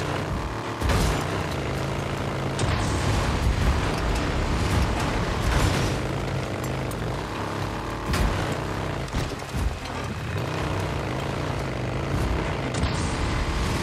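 A motorcycle engine revs and rumbles steadily.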